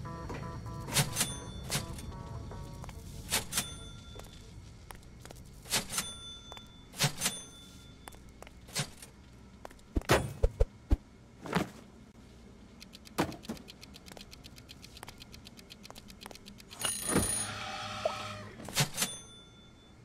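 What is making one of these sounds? Small objects clatter and clink as they are picked up one after another.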